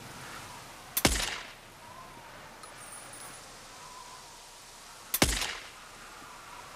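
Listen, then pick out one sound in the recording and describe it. A sniper rifle fires two loud, sharp shots with a short echo.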